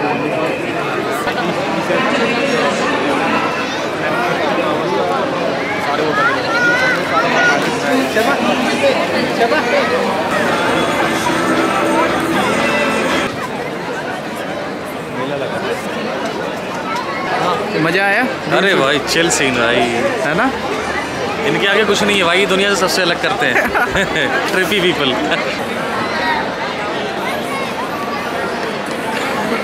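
A large crowd chatters outdoors.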